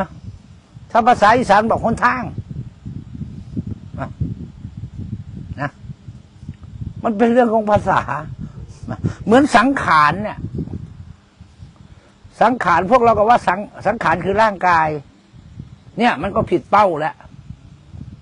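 A middle-aged man speaks calmly into a clip-on microphone, in short phrases with pauses.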